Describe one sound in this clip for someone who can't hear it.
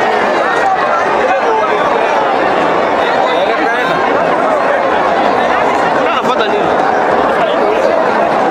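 A large crowd of spectators cheers and shouts loudly outdoors.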